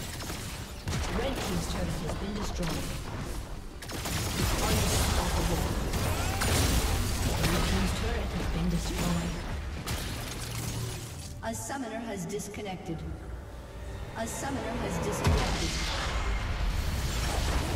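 Magic blasts and impacts crackle in a video game battle.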